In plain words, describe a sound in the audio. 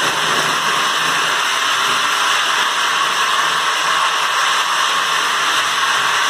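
A floor grinder whirs and grinds steadily over concrete.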